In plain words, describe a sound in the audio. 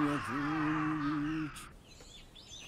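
Crows caw loudly overhead.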